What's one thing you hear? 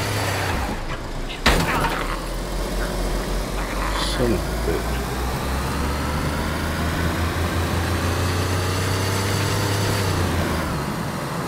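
Tyres roll on rough concrete.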